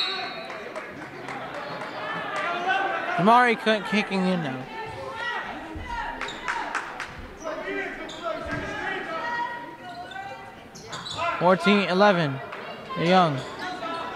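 A crowd of spectators murmurs and chatters in an echoing gym.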